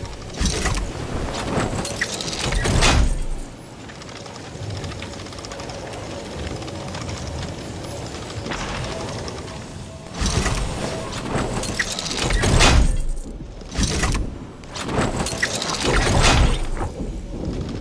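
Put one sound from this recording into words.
Wind rushes loudly past during a fast fall through the air.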